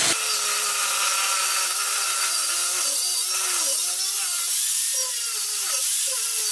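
An angle grinder whines loudly, its pitch dipping as it bites into metal.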